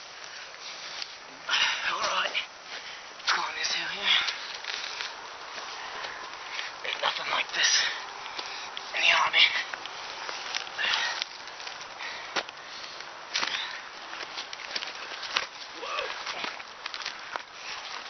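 Hands rustle through dry grass and leaves close by.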